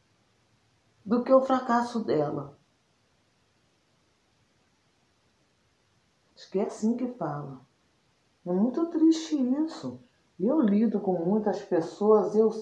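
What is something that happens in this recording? A woman talks calmly and close to a microphone, in bursts with pauses.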